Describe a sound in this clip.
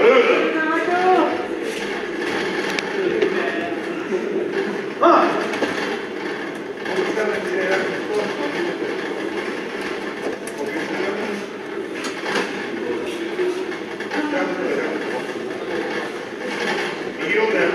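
A crowd in a large echoing hall murmurs and calls out.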